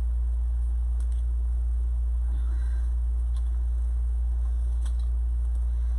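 Wooden pieces click and tap softly.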